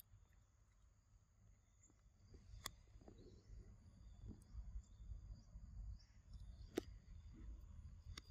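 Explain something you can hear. A long-tailed macaque chews peanuts.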